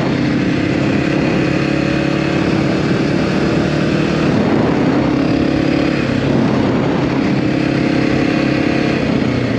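A motorcycle engine hums steadily, its pitch rising and falling slightly.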